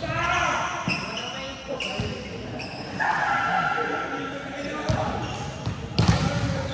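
Hands strike a volleyball with sharp slaps in a large echoing hall.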